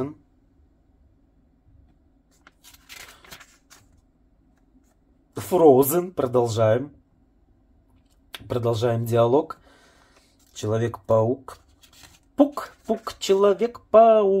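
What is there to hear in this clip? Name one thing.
Pages of a glossy catalogue rustle as they are turned.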